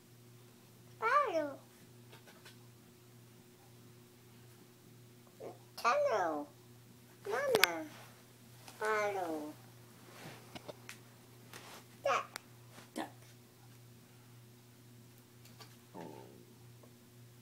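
A woman speaks in a high, playful voice close by, in short bursts.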